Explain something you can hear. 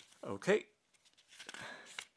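Paper pages rustle as a booklet is leafed through.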